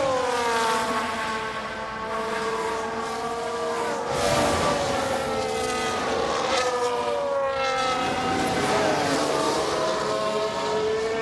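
Racing car engines whine at high revs, rising and falling as they shift gears.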